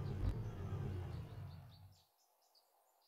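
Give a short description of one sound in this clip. A car engine rumbles and revs.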